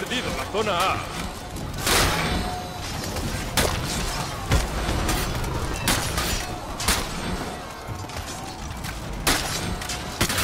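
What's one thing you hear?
A crowd of warriors roars and shouts throughout.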